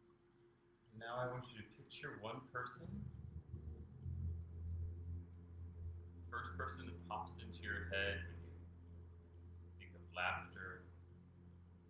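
A man speaks calmly and softly nearby.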